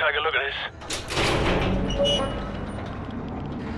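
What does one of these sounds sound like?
A metal container door swings open with a creak.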